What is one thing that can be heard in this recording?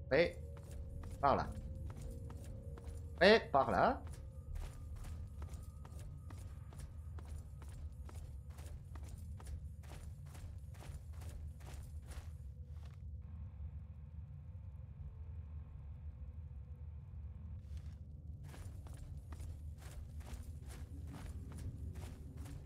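Footsteps crunch steadily over rocky ground.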